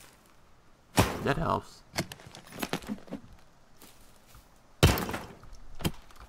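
A suitcase latch clicks open.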